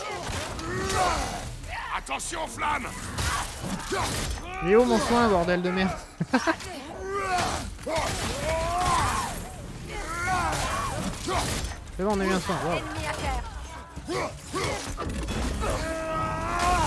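An axe strikes and slashes in a fight.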